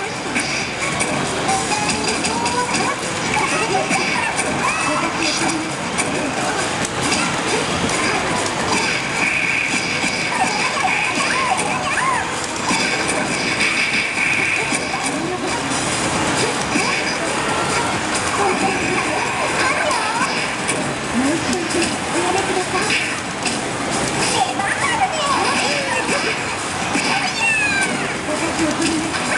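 Fighting game sound effects of hits and blasts play through a television speaker.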